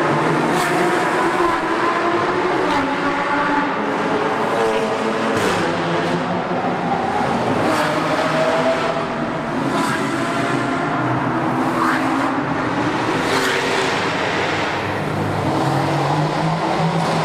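A car drives steadily through a tunnel, with road noise echoing loudly.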